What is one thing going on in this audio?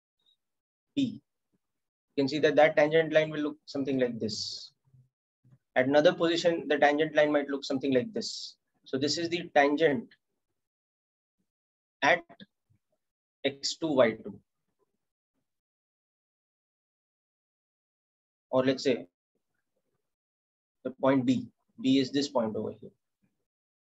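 A young man speaks calmly into a microphone, in short bursts with pauses.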